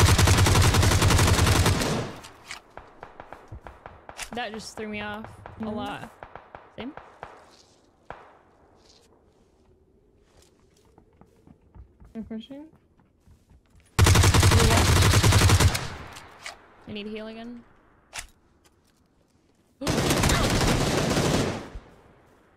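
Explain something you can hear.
Bursts of rifle fire ring out loudly.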